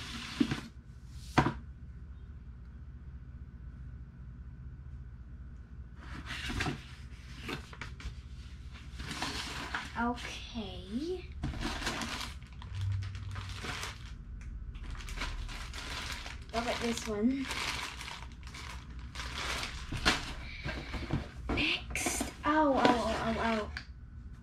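Paper and cardboard rustle as a box is handled.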